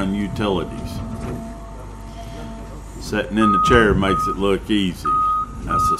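An excavator engine rumbles nearby.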